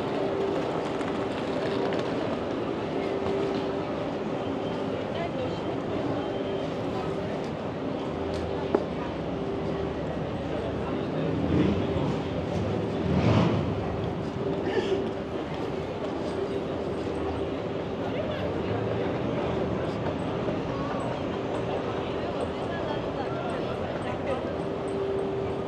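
A crowd of pedestrians chatters along a busy street outdoors.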